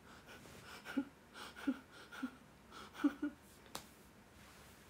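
A young woman giggles close to a microphone.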